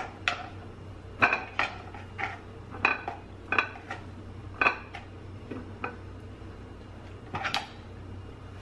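Slices of fruit are set down on a plate with light clicks.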